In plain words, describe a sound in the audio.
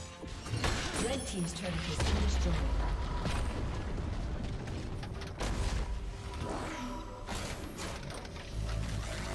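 Fantasy spell effects whoosh and crackle in quick bursts.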